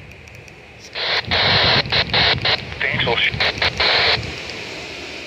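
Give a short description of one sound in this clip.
A handheld radio hisses loudly with static in short bursts.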